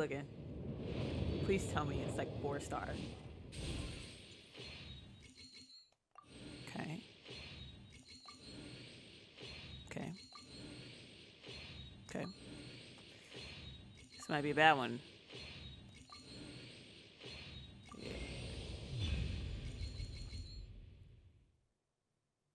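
Magical whooshing and chiming effects sweep and burst.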